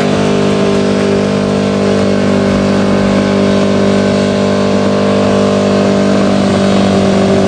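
Tyres squeal and scrub against asphalt during a burnout.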